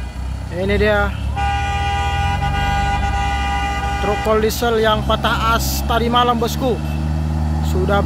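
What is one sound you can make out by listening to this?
A truck engine rumbles as the truck pulls away.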